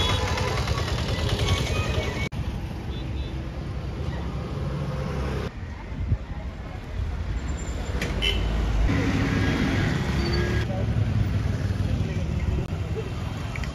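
A motorbike engine hums as it rides past.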